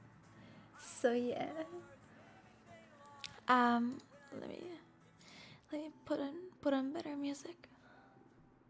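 A young woman speaks casually and expressively into a close microphone.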